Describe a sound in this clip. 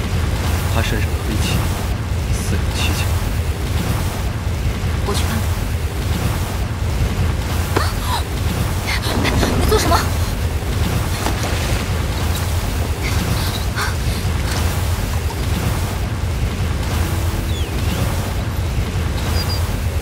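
Water rushes steadily nearby.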